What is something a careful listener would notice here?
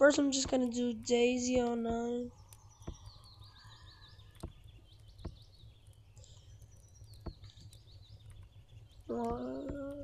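Keys on a keyboard click softly as they are pressed.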